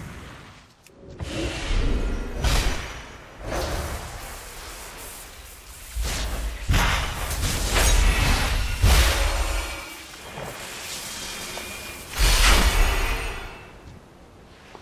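Magic spells blast and crackle in bursts.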